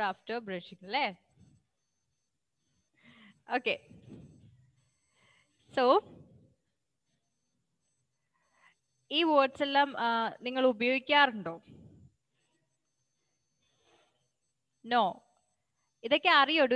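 A woman speaks animatedly over an online call, in short bursts with pauses.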